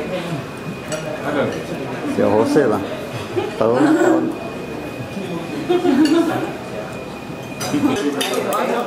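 A middle-aged man talks nearby.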